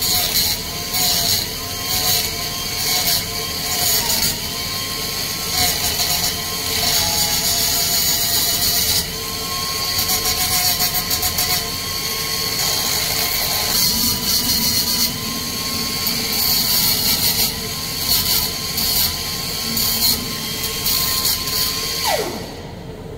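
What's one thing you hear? An angle grinder whines loudly, grinding metal in bursts.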